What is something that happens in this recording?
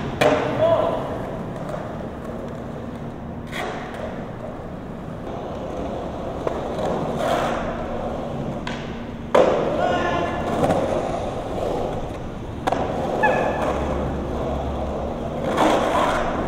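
Skateboard wheels rumble and roll over concrete.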